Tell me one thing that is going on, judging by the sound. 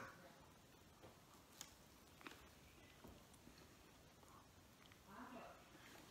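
A man chews food with soft wet clicks.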